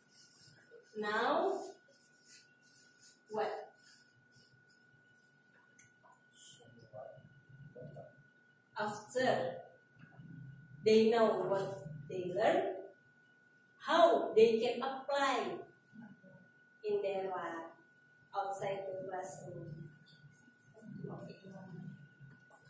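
A woman speaks to a group, heard from across the room.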